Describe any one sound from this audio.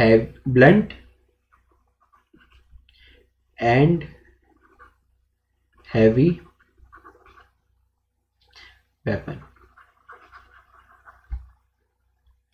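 A young man speaks calmly into a microphone in short bursts, like a lecture.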